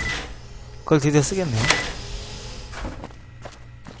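A heavy metal door slides open with a hiss.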